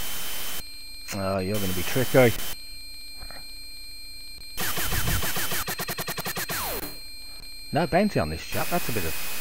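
A laser cannon fires in rapid, sweeping electronic zaps.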